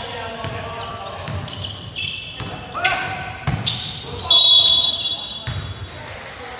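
Sneakers squeak sharply on a hard court floor in a large echoing hall.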